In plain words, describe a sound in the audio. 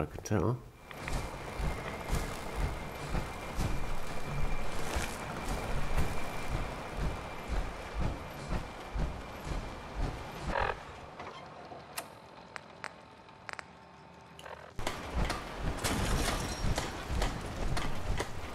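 Heavy metal footsteps thud steadily on the ground.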